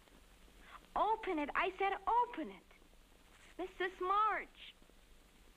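An elderly woman speaks in a high, wavering voice.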